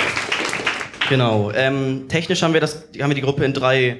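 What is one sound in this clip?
A man speaks into a microphone in an echoing hall.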